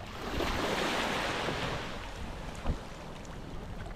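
A young boy splashes in shallow water.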